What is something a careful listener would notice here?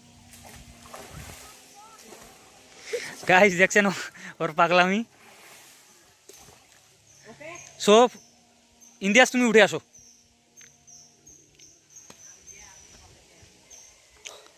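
A boy splashes while swimming in water.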